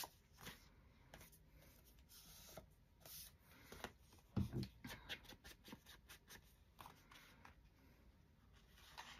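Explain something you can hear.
Paper rustles as hands handle sheets and cards.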